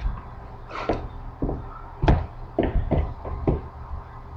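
Sneakers step and thud on a hard wooden floor close by.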